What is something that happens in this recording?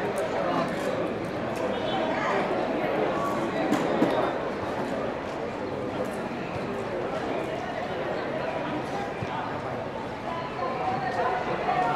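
A crowd murmurs and calls out across a large open stadium.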